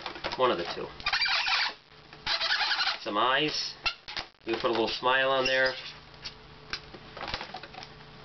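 Rubber balloons squeak as they are twisted.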